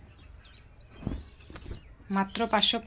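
Cloth rustles as it is moved by hand.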